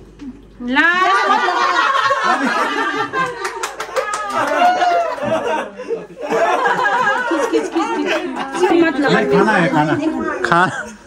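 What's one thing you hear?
A young woman laughs loudly and squeals close by.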